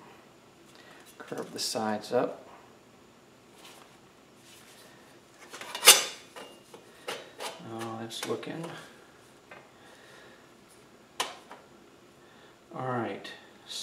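Thin sheet metal flexes and clanks against a workbench.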